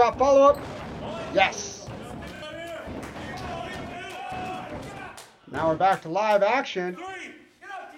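A crowd cheers and shouts in a large room.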